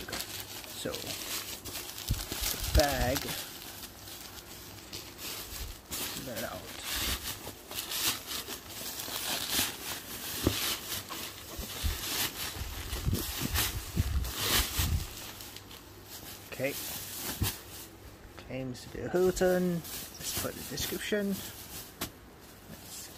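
Nylon fabric rustles and crinkles as hands handle a bag.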